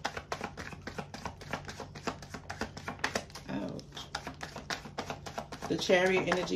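Cards riffle and tap quickly in someone's hands.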